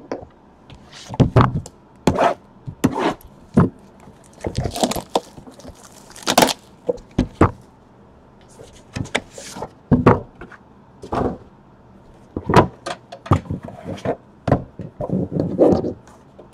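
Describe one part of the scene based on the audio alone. Cardboard box lids scrape and tap as hands handle them.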